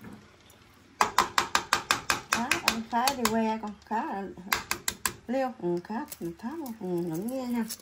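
Eggshells tap and crack against one another in water.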